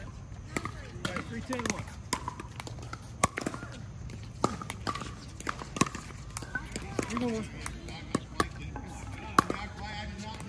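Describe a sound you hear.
Paddles strike a plastic ball with sharp hollow pops, over and over.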